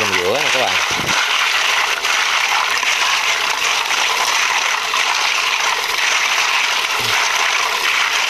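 Snail shells clatter and rattle as a hand stirs them in water.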